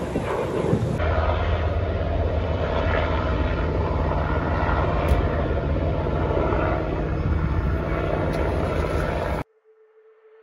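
A helicopter's rotor thuds and drones overhead.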